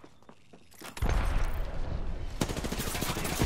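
A figure slides noisily across rough ground.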